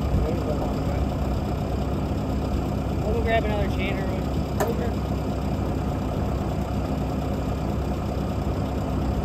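A truck engine idles steadily nearby.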